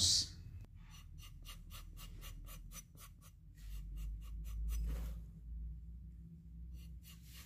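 A blade scrapes lightly against leather in short strokes.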